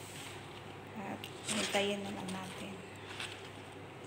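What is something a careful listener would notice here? Paper bags rustle as they are handled.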